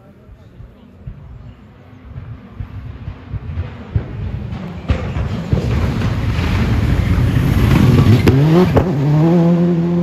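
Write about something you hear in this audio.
A rally car engine roars louder as it approaches and races past close by.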